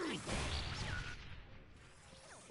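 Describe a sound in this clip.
An explosion booms loudly with crackling sparks.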